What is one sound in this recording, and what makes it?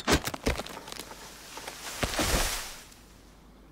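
A tree crashes down with a rushing sound.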